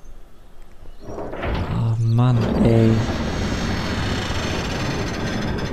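Heavy doors creak and rumble open.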